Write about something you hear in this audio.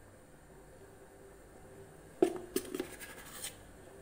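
Spice powder patters softly into a metal bowl.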